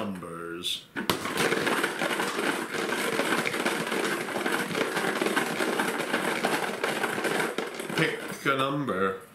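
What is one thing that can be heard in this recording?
Plastic balls rattle and clatter inside a jar as a man shakes it.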